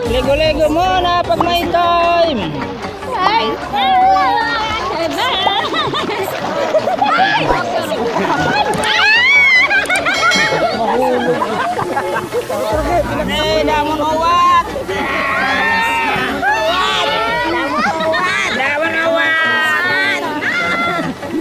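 Children and women shout and laugh excitedly nearby.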